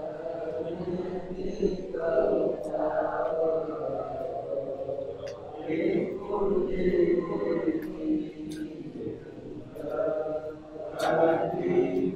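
A middle-aged man speaks on a phone close to a microphone.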